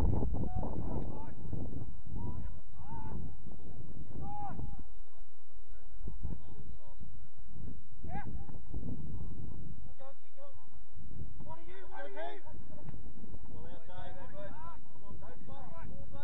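Young players shout to each other across an open field, some distance away.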